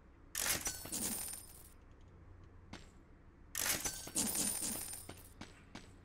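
Coins clink and chime as they are collected.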